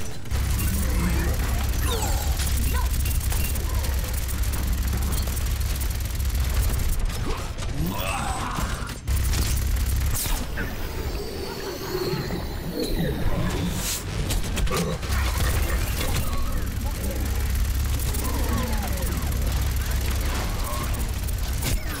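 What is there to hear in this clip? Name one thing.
A heavy gun fires in rapid, rumbling bursts.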